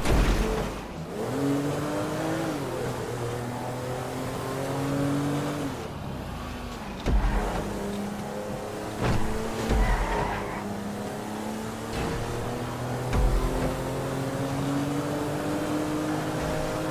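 A car engine revs up and drops back as it changes gear.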